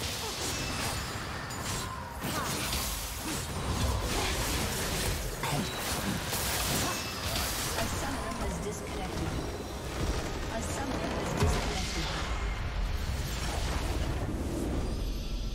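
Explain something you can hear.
Game spell effects and hits crackle and boom in a busy battle.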